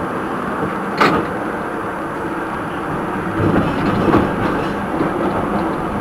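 Tram wheels clack over rail joints.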